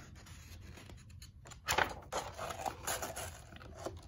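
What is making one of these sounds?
A book page turns with a papery rustle.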